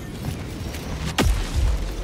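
A heavy object crashes down onto the ground with a loud boom.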